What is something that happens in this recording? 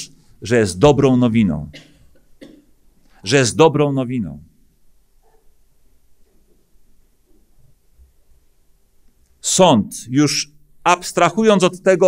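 A middle-aged man speaks with emphasis through a microphone, pausing between phrases.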